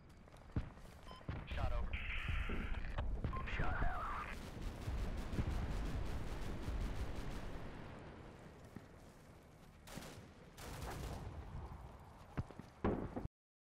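Footsteps rustle through grass as several soldiers run.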